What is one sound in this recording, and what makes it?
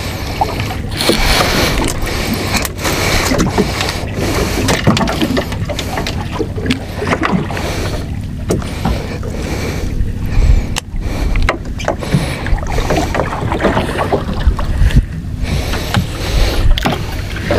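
Wind blows steadily across open water.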